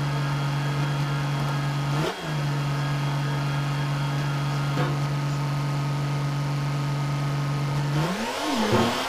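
A tractor's diesel engine idles with a steady hum.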